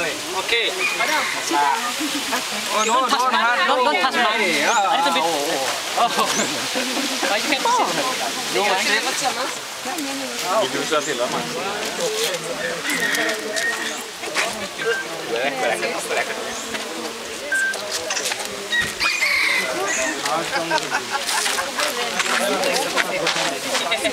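A crowd of men and women talk and call out close by, outdoors.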